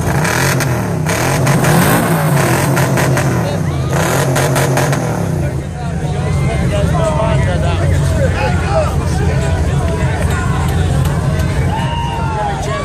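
An engine roars loudly at high revs nearby.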